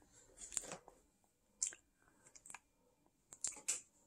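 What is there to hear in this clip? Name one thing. A banana peel tears and crinkles as it is pulled back.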